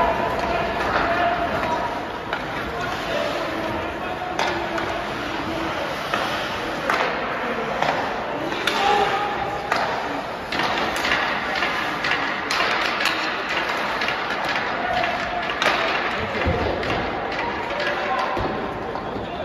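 Hockey sticks clack sharply against the puck.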